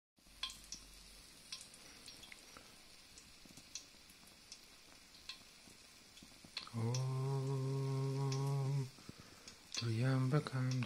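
A fire crackles and pops softly.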